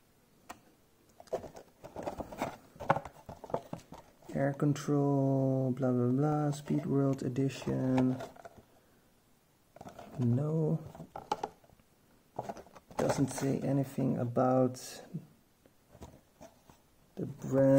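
A cardboard box rubs and taps as hands turn it over.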